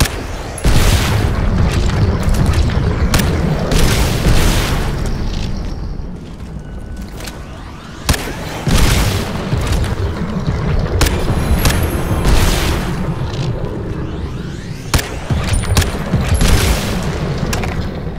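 A rifle fires loud single shots, each followed by a booming echo.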